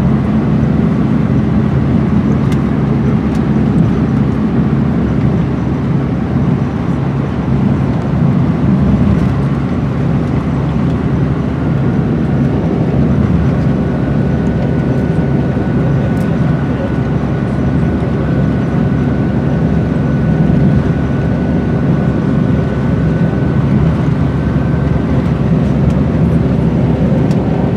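A vehicle engine hums steadily as it drives along a rough road.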